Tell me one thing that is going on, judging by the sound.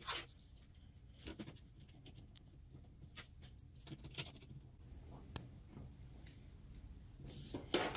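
Metal connectors click and scrape as they are screwed onto sockets.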